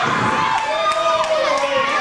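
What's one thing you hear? A man shouts with a strained, animated voice.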